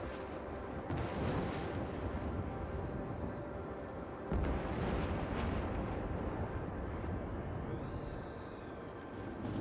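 A tornado roars with a deep, rushing wind.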